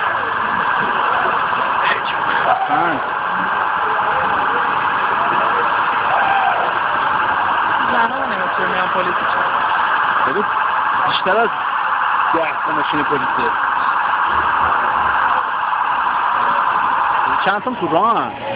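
A police siren wails loudly nearby with a fast, steady warble.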